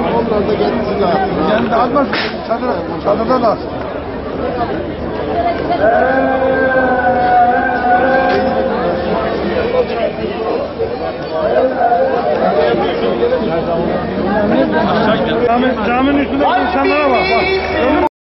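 A large crowd chants and shouts loudly outdoors.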